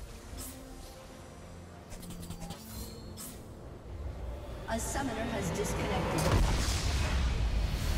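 Fantasy spell effects crackle and whoosh in quick bursts.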